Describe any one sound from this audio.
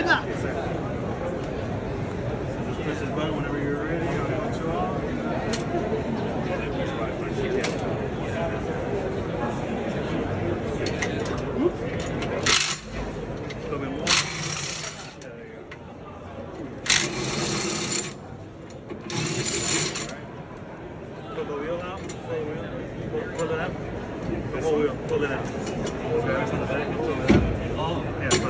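A crowd chatters nearby in a large hall.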